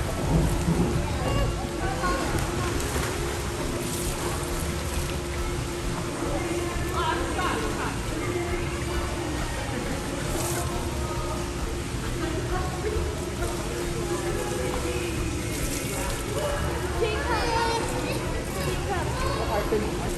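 Children shout and squeal in an echoing hall.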